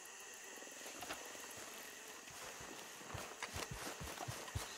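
Footsteps crunch quickly through grass and brush.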